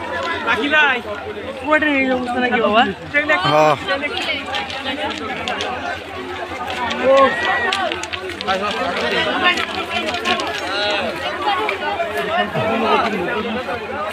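A crowd of men talk and call out loudly all around, outdoors.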